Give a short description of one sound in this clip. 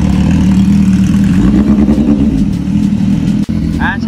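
A motorcycle rides away down the street, its engine fading.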